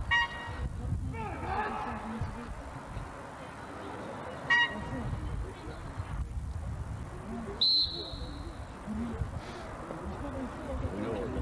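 A man shouts short commands outdoors.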